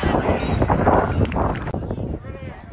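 Young men cheer and shout loudly.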